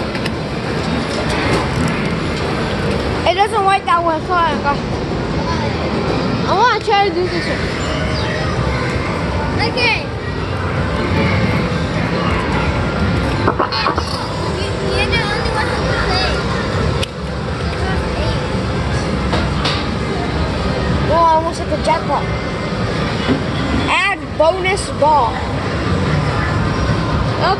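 Arcade machines chime and play electronic jingles all around.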